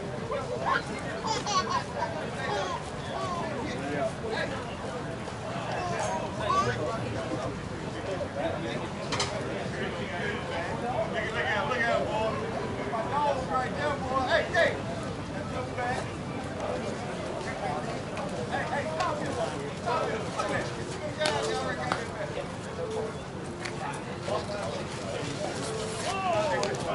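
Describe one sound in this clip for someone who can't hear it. Men chat and call out outdoors, some way off.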